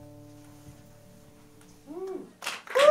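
An acoustic guitar is strummed close by.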